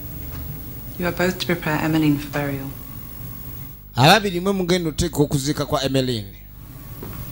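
A woman speaks sternly and slowly nearby.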